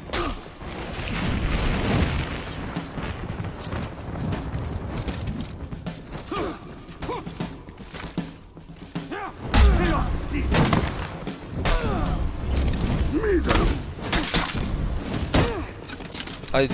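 Metal swords clash and ring sharply.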